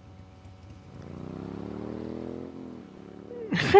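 A motorbike engine revs up.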